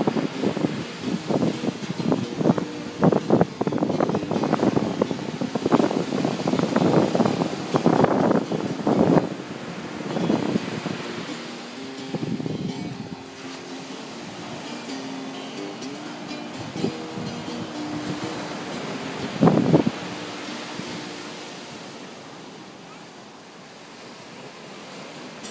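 Waves break and wash up onto the shore.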